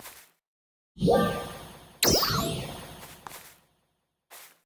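A magical spell bursts with a whooshing, ringing shimmer.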